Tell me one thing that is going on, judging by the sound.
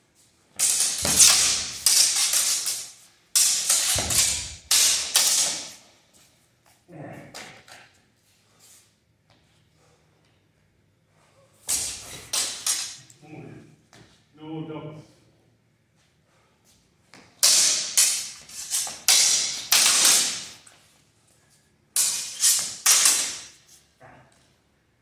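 Steel swords clash and scrape in bursts in an echoing hall.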